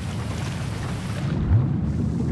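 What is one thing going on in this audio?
Water splashes at the surface as a diver goes under.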